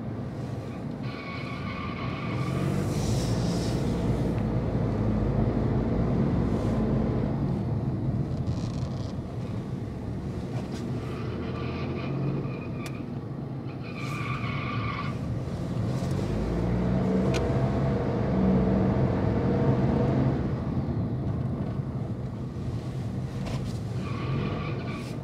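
Tyres roll over a smooth concrete floor.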